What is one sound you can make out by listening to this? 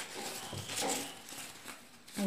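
Paper crinkles and rustles in hands.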